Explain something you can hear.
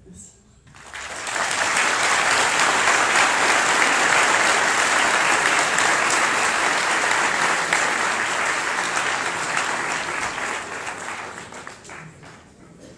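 A large crowd applauds loudly.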